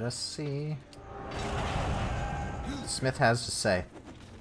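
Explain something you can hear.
A magic spell bursts with a rushing roar.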